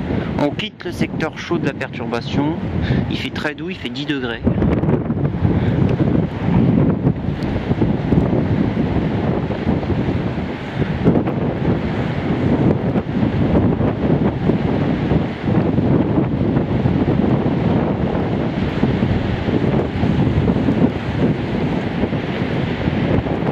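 Strong wind roars and buffets outdoors.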